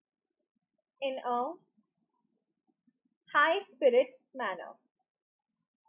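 A young woman speaks calmly into a close microphone, in short bursts with pauses.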